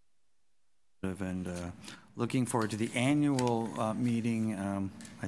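A man speaks clearly through a microphone.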